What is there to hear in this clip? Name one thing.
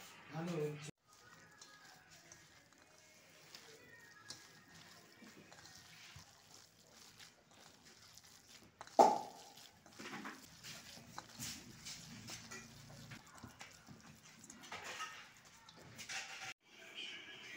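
Hands squelch and squish through a wet mixture in a metal bowl.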